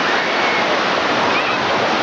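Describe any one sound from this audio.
Water splashes as a boy kicks through the shallows.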